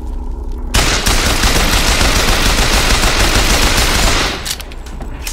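A machine gun fires a rapid, roaring burst.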